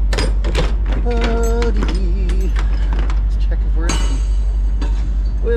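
A trailer door creaks open.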